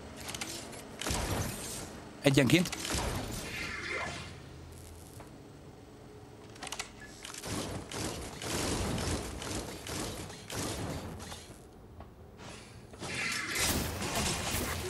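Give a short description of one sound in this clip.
Gunfire and blasts crackle in a game.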